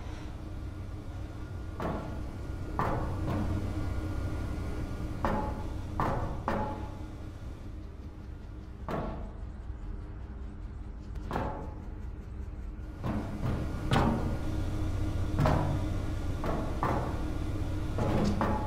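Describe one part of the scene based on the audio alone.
A large fan hums steadily with a low drone.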